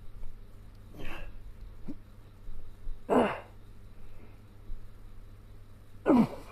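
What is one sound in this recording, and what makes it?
A man grunts and breathes out hard with effort, close by.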